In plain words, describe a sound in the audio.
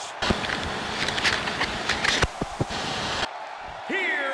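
Harsh static hisses and crackles.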